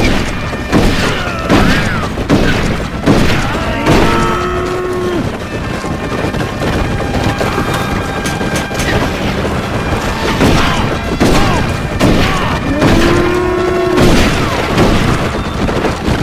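Revolver shots crack in quick bursts.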